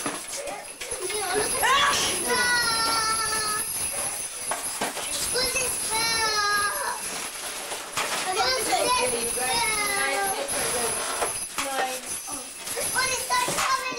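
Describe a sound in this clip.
Plastic foam packaging squeaks and rustles as it is pulled from a box.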